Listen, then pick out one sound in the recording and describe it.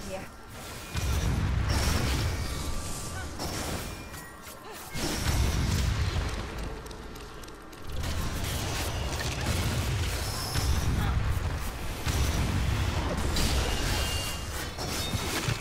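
Magic blasts whoosh and roar.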